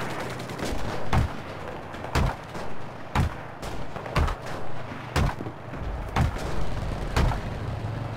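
A hammer knocks repeatedly on wood.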